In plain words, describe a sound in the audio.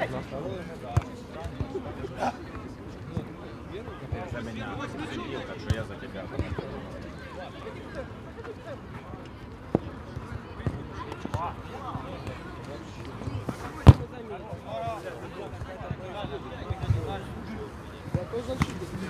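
A football is kicked with sharp thuds.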